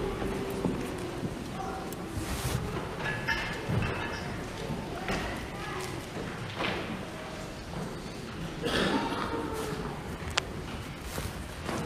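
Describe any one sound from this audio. A man chants in a large echoing hall.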